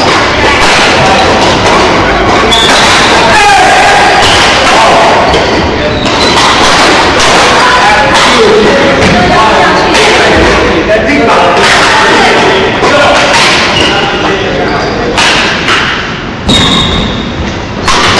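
Adult players call out and chatter across an echoing hall.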